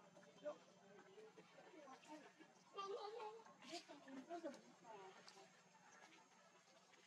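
Young monkeys squeal and chatter as they scuffle.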